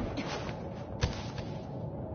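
A heavy metal blade slams into the ground with a loud thud.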